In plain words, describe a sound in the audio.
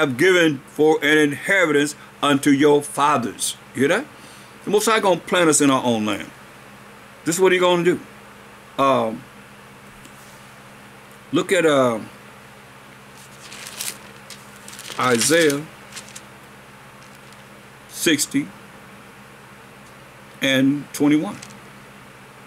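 An elderly man speaks slowly and calmly into a nearby microphone, with long pauses.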